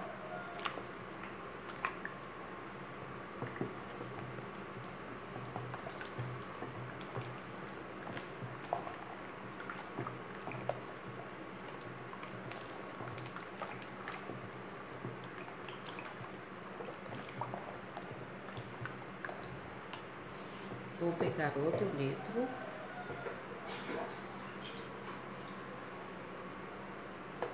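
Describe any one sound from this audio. A wooden spoon stirs soapy water, knocking against a plastic basin.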